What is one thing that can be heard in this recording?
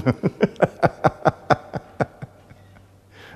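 An older man laughs heartily into a microphone.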